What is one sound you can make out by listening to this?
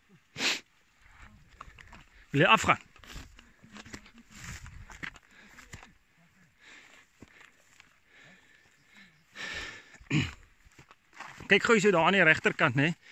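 Footsteps crunch through dry brush.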